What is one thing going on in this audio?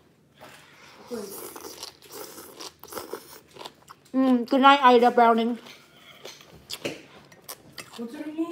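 A young woman slurps and chews food close to a microphone.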